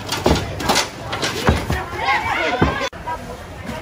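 Plastic crates rattle and knock on a hand trolley.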